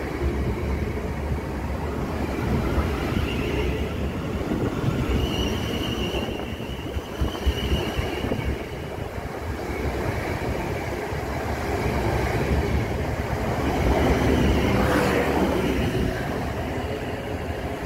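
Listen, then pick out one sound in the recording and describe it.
A train rumbles past close by on the tracks.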